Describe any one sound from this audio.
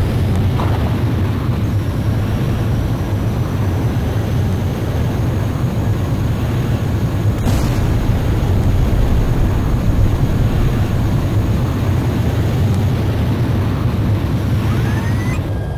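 A jet engine roars steadily as a fighter plane flies low.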